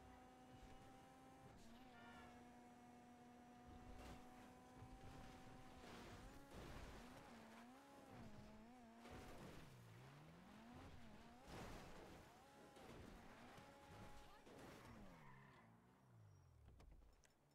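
A car engine roars steadily, then revs up and down as the car bounces over rough ground.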